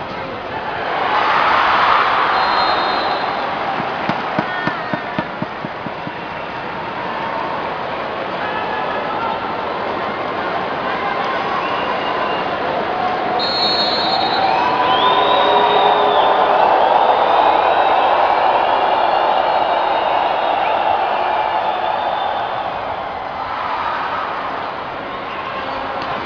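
A large crowd chatters and cheers loudly in a big echoing arena.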